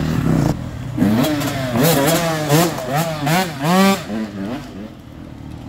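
A dirt bike revs hard through the gears as it passes close by.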